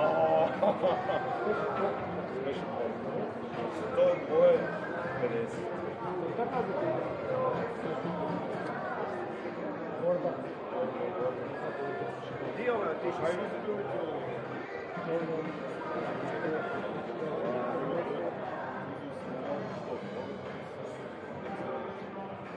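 Many people chatter indistinctly in a large echoing hall.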